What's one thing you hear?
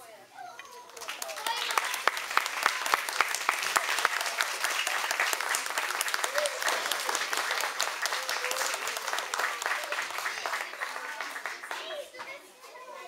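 An audience claps loudly in an echoing hall.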